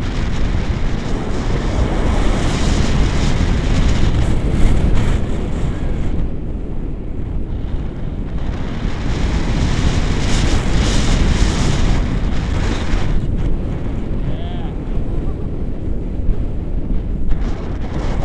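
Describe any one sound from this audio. Strong wind rushes and buffets loudly past a microphone.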